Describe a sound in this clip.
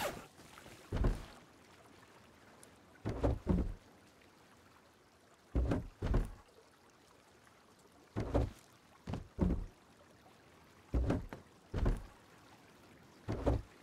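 Wooden boxes thud as they are opened and closed.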